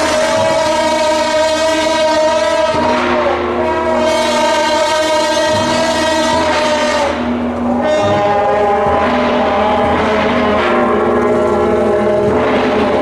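Horns play a loud, shrill, wailing tune.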